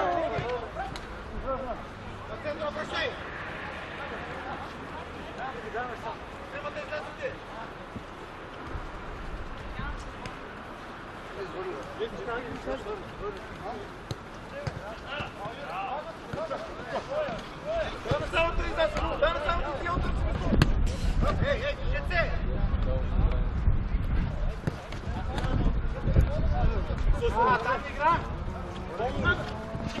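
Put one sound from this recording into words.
Men shout and call out to each other at a distance outdoors.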